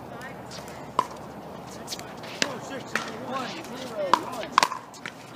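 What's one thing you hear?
A pickleball paddle hits a plastic ball with a sharp pop outdoors.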